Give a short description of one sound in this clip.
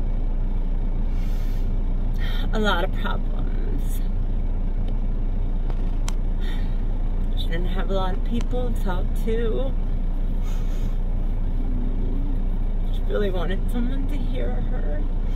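A low steady hum of an idling car engine runs throughout.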